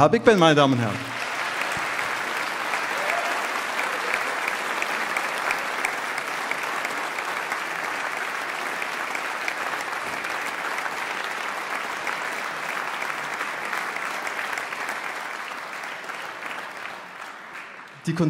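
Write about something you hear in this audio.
An audience applauds steadily and slowly fades.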